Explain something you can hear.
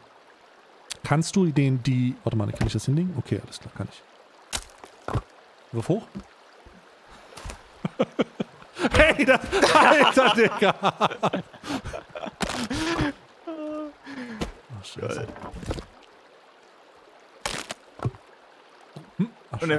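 An axe chops into wooden logs with sharp knocks.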